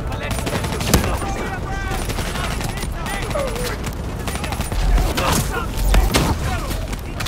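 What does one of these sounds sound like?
An explosion booms and debris crashes.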